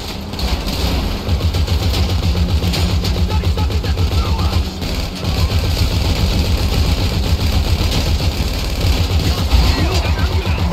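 An armoured truck's engine rumbles steadily as it drives along.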